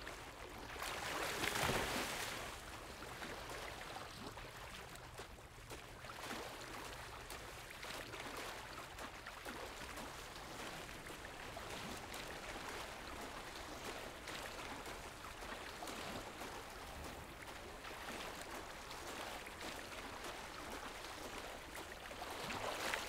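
Water splashes steadily as a swimmer paddles through a river.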